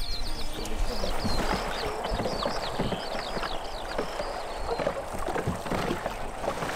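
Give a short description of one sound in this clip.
A river flows and rushes steadily.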